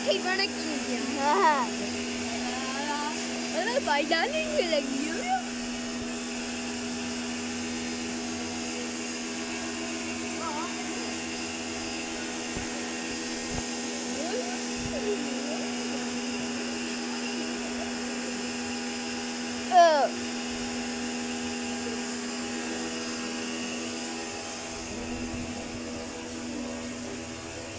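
A pressure washer motor hums steadily.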